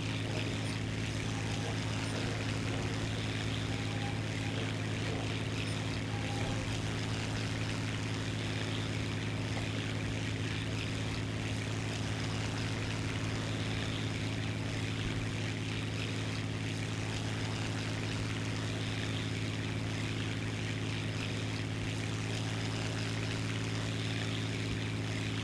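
A propeller plane's engine drones steadily and loudly throughout.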